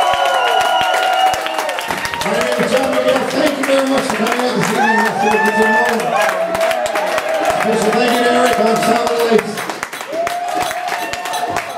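A rock band plays loudly in a live room.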